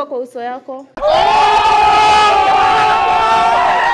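A group of young men shout loudly together outdoors.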